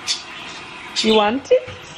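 A cat meows close by.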